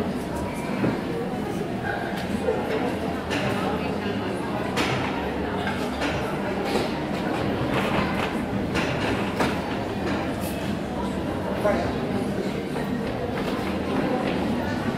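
A horse's hooves thud on soft sand in a large echoing arena.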